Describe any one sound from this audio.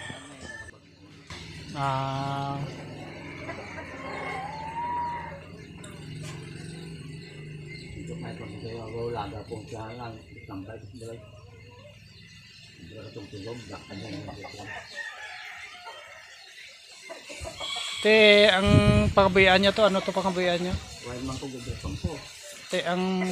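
An elderly man speaks quietly nearby.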